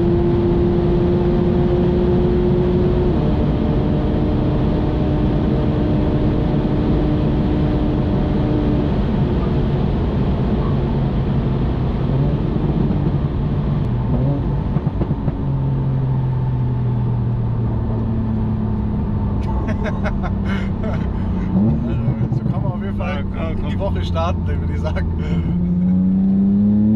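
Wind and tyre noise roar loudly.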